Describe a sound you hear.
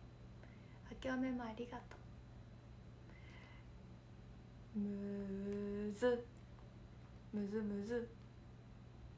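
A young woman speaks brightly and close up, in short bursts with pauses.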